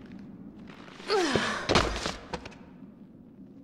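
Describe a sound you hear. A young woman screams as she falls.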